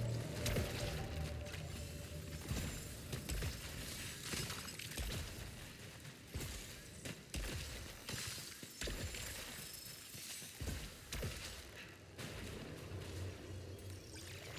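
Footsteps crunch as a character runs over rough ground.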